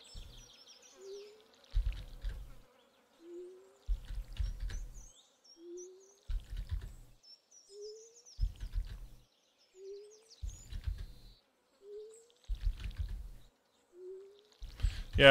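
Water splashes from a watering can again and again.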